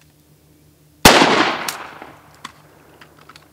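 A rifle fires a single shot that echoes outdoors over water.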